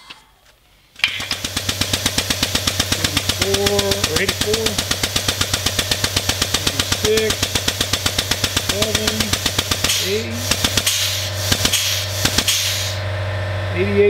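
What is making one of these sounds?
A hydraulic pump motor chugs rapidly and steadily nearby.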